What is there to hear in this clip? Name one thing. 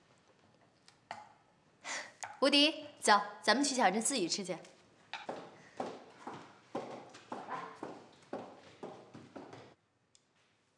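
A young woman speaks brightly and cheerfully, close by.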